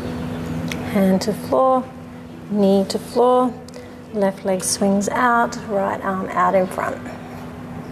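A woman speaks calmly, giving instructions close to a microphone.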